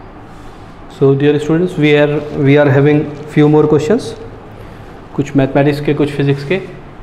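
A man speaks calmly into a clip-on microphone, close by.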